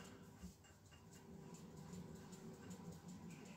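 A bicycle crank spins and ticks freely.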